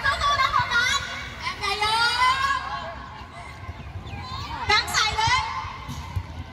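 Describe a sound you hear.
Young children shout and call out excitedly outdoors.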